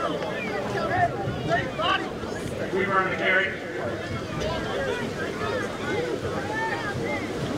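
A crowd of young players and spectators cheer and shout outdoors.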